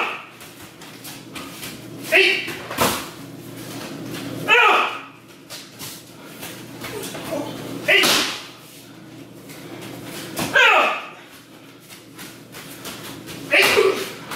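Bare feet shuffle and slide on a mat.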